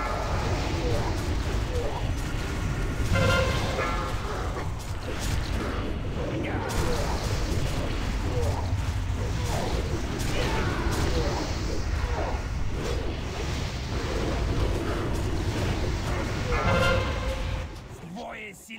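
Magic spells crackle and blast in a busy battle.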